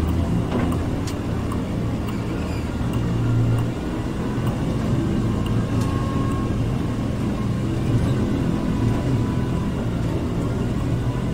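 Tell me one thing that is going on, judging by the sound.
A heavy vehicle engine rumbles steadily.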